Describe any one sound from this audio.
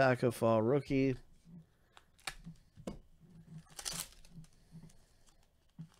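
Plastic wrapping crinkles as it is torn open.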